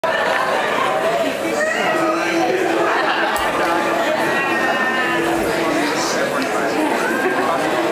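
A band plays live music in a large hall.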